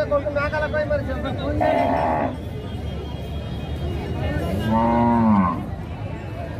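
Men talk loudly in a crowd outdoors.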